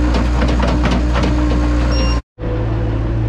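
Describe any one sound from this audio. Manure thuds and scrapes as a loader bucket dumps it.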